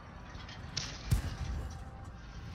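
A tank cannon fires with a loud, sharp boom.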